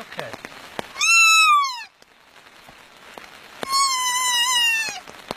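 A fawn bleats loudly in high, wailing cries.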